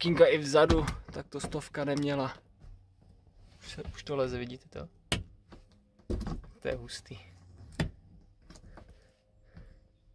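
A car door handle clicks.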